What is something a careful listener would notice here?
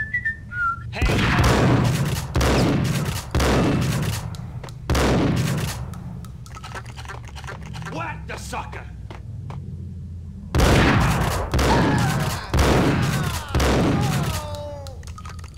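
A pump-action shotgun fires several blasts that echo in a brick tunnel.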